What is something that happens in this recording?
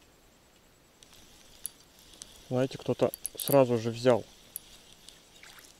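A fishing reel whirs softly as line is wound in.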